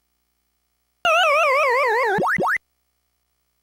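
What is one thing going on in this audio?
An arcade game plays a falling, warbling electronic tune that ends in quick rising blips.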